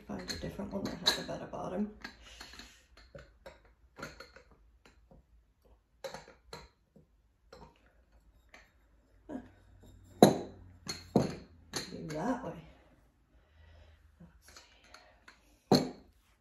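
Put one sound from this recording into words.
Glass jars clink and knock against a wooden table.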